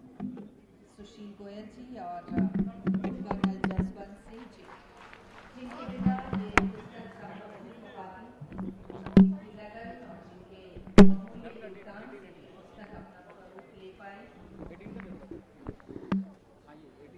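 Several men talk and murmur nearby.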